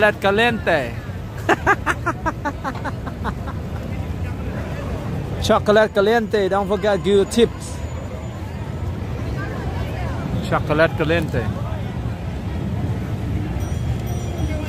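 A crowd chatters outdoors on a busy street.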